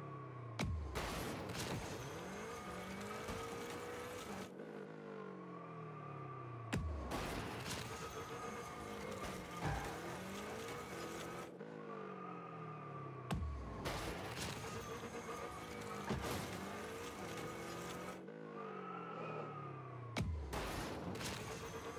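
A car engine roars and whooshes as it boosts.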